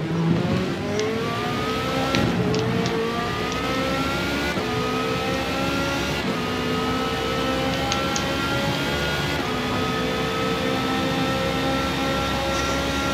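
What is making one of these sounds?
A racing car engine roars and climbs in pitch through each gear, with quick gear shifts.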